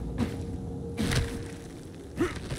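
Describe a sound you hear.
Hands grab a rope with a soft thump.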